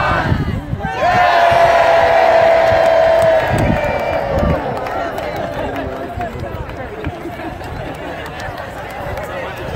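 A jet plane roars overhead and slowly fades.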